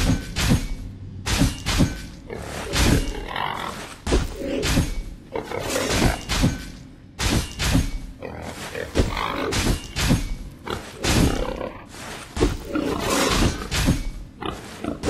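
Laser blaster shots and impacts ring out in a video game battle.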